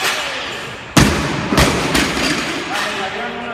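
A heavy barbell crashes onto the floor with a loud metallic clang.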